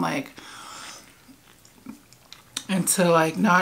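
A woman chews food with soft, wet crunching sounds.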